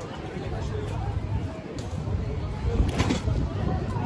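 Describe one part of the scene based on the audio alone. A handcart rolls over paving stones.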